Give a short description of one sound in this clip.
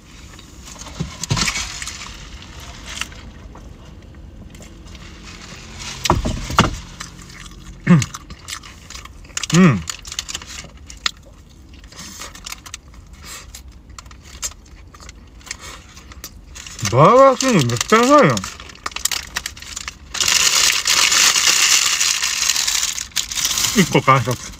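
A paper wrapper crinkles and rustles.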